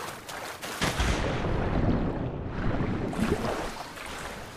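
Water splashes and rumbles as a swimmer plunges under the surface.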